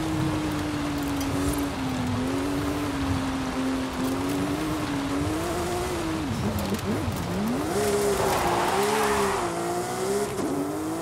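Tyres crunch and skid on loose dirt.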